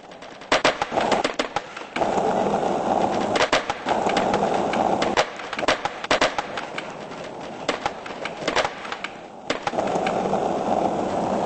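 A skateboard rolls over smooth pavement.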